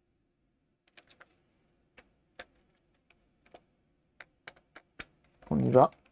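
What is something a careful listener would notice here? Plastic parts click and tap as a handheld case is handled.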